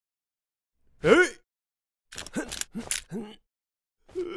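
A man shouts a command in a cartoon voice.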